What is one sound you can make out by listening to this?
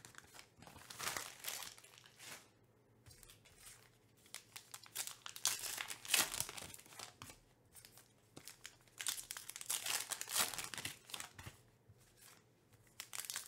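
Trading cards tap and slide on a stack.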